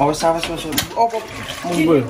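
Water pours into a metal pot.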